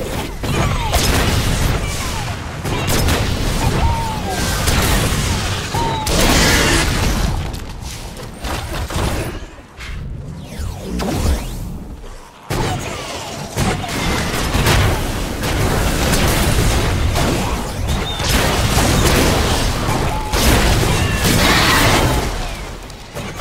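Explosions boom and roar in a video game.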